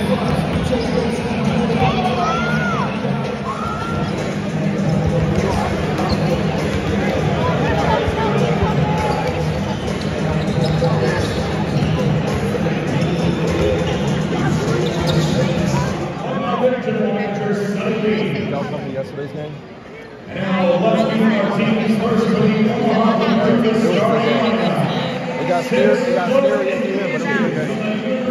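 A crowd murmurs and chatters throughout the hall.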